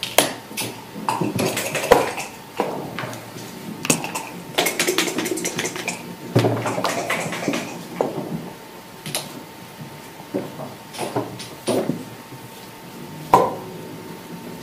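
Backgammon checkers clack on a wooden board.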